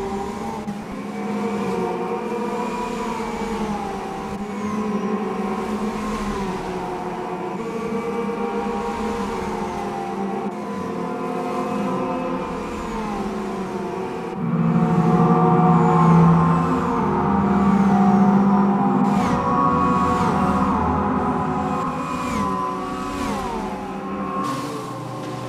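Racing car engines roar and rise in pitch, dropping sharply with each gear change.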